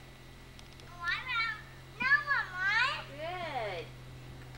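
A young child speaks in a high, excited voice nearby.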